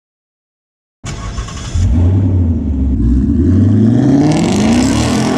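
A car engine starts and revs loudly.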